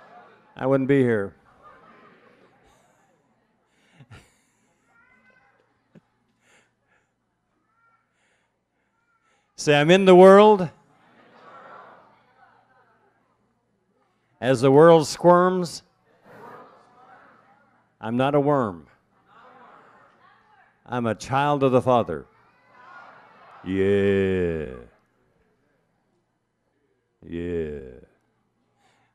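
An elderly man speaks calmly and expressively close to a microphone, with long pauses.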